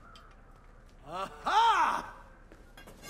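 A man exclaims loudly in surprise.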